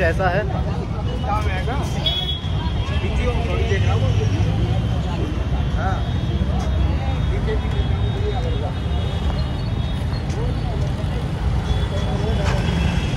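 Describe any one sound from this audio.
Car and motorbike engines hum and rumble in a busy street.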